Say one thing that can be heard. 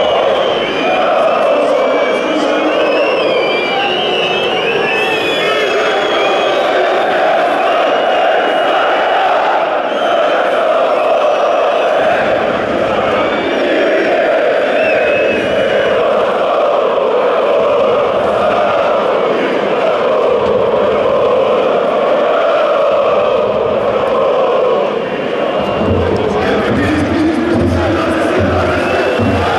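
A large stadium crowd chants and sings loudly in unison.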